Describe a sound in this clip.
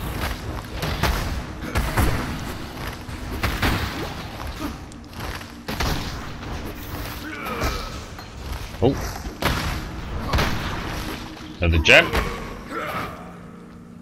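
Magic bolts zap and crash into enemies.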